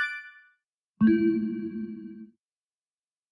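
A low, rich jingle plays and quickly stops.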